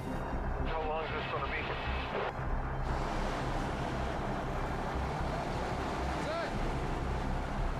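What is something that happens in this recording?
A heavy truck engine rumbles steadily outdoors.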